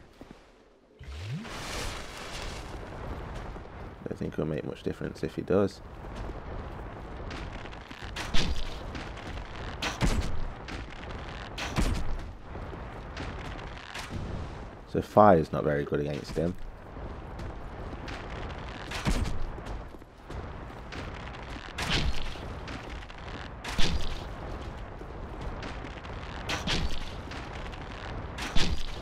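Heavy blades strike and clang in repeated blows.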